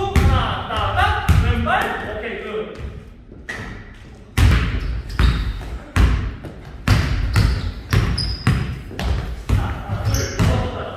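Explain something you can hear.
A basketball bounces hard and fast on a wooden floor in an echoing gym.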